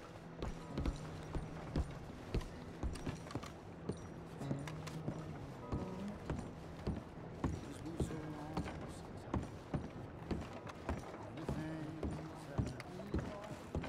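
Footsteps thud steadily on wooden boards.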